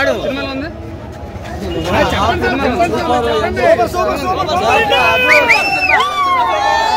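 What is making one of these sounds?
A crowd of men murmurs in the background.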